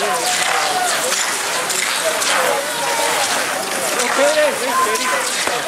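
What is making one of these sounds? Skis swish and scrape across snow.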